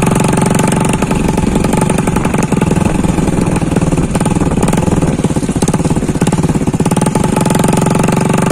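Tyres rumble and crunch over a rough dirt road.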